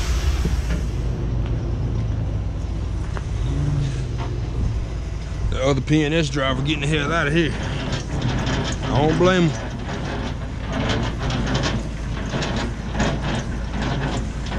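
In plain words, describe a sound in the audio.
A diesel truck engine idles nearby.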